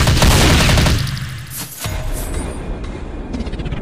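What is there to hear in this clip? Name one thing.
A rocket whooshes past with a roaring hiss.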